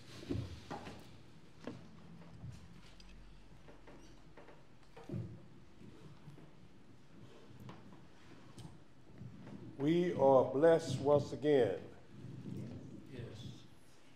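An elderly man speaks with feeling through a microphone in an echoing hall.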